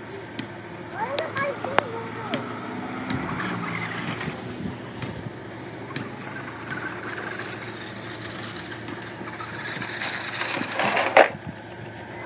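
A toy car's small electric motor whines, rising and falling as it drives around.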